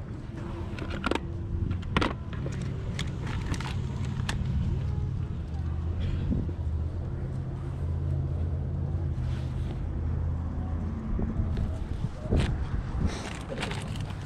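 Plastic packaging crinkles and clicks as a hand handles it.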